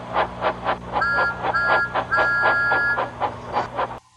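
A steam whistle blows several short blasts.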